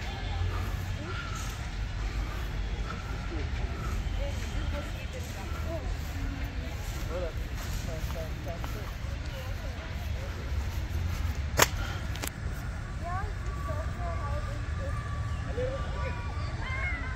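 Young adults chat and laugh outdoors.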